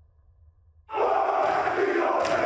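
Feet stamp heavily on the floor.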